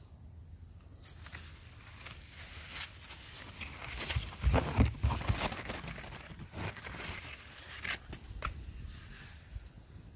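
Leaves rustle as a hand pushes through branches.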